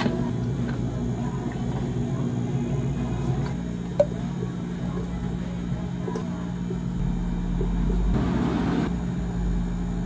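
Fizzy soda pours and crackles over ice.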